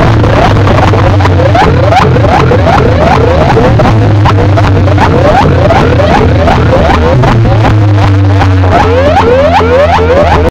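Very loud music with heavy thumping bass blares from a large stack of loudspeakers.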